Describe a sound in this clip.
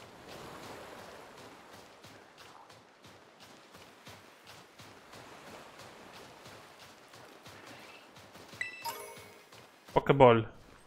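Quick footsteps patter across sand.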